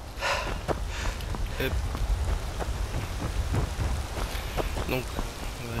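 Footsteps crunch steadily on gravel and dirt.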